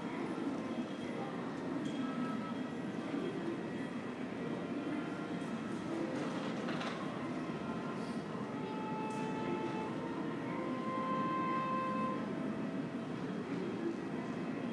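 A faint murmur of distant people echoes through a large hall.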